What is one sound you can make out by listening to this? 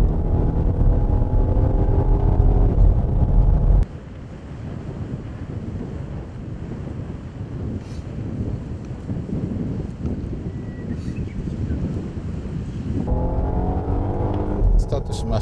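A car engine hums and revs steadily, heard from inside the car.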